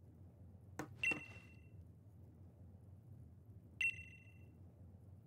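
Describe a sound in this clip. A short electronic chime beeps twice.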